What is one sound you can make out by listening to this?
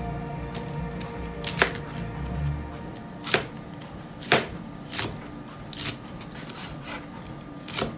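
A knife chops through crisp cabbage, knocking on a cutting board at an uneven pace.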